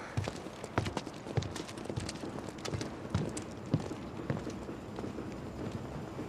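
Footsteps tap on a hard pavement.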